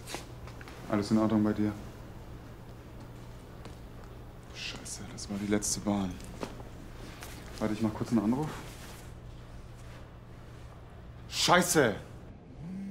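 A man speaks in low, tense tones close by.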